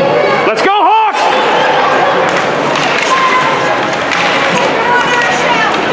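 Hockey sticks clack against the puck and each other.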